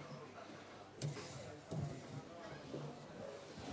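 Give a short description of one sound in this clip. A chair bumps and shuffles.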